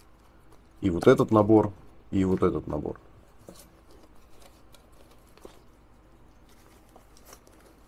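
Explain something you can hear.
Fabric pouches rustle softly as hands handle them.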